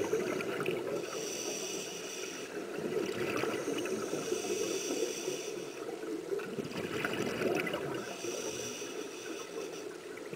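A diver's regulator hisses with each inhaled breath.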